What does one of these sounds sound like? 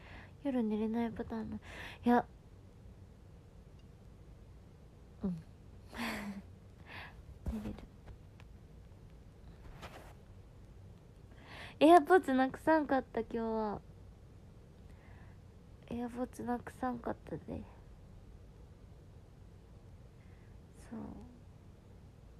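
A young woman speaks softly and quietly, close to a microphone.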